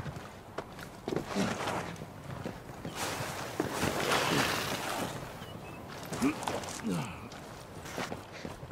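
Boots scrape and crunch on rocky ground.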